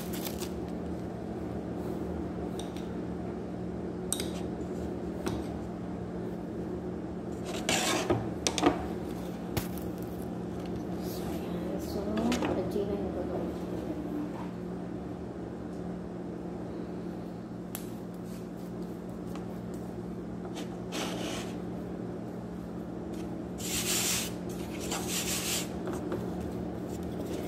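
Hands knead and press dough on a wooden table with soft thumps and rustles.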